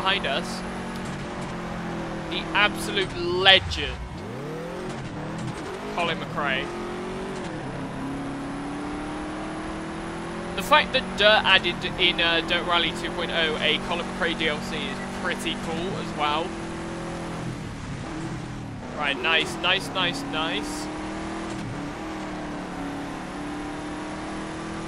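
A rally car engine roars steadily, rising and falling with gear changes.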